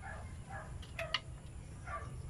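Metal parts click sharply as a hand works on an engine.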